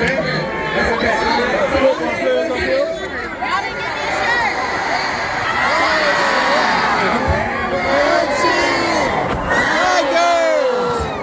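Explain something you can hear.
A group of men sing together loudly through loudspeakers, echoing in a large open stadium.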